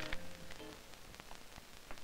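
Footsteps walk slowly along a hallway.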